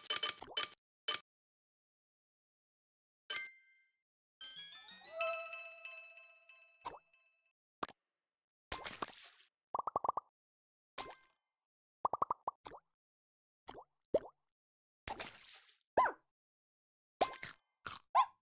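Short bright game sound effects pop and chime in quick bursts.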